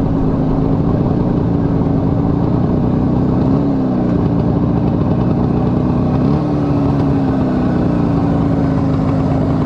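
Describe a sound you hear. Wind rushes past while riding.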